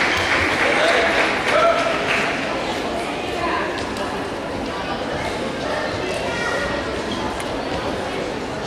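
A crowd of people chatters and murmurs in a large echoing hall.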